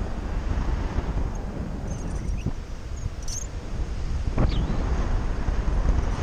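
Strong wind rushes and buffets loudly, as if heard high up outdoors.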